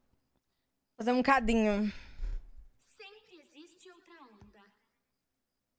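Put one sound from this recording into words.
A young woman speaks into a close microphone.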